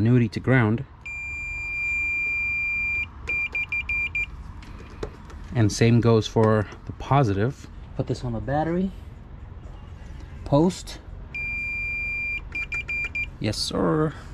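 A multimeter beeps in steady, long tones.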